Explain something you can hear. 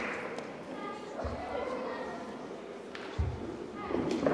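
Feet thump softly on a padded floor.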